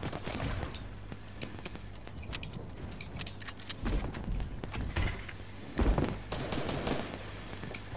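Wooden panels clatter and snap into place as they are built.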